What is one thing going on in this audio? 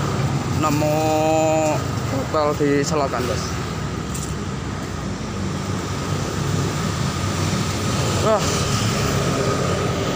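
Motorbikes pass along a road nearby.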